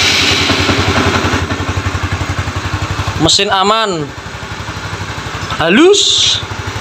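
A motorcycle engine idles with a steady, fast putter.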